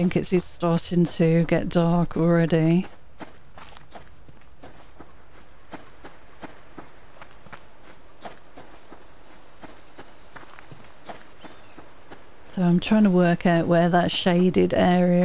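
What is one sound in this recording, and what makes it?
Footsteps crunch through grass at a steady pace.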